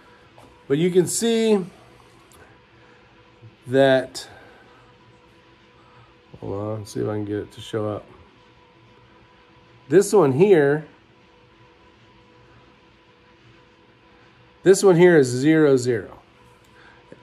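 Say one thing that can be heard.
A middle-aged man talks calmly close to the microphone, in short bursts with pauses.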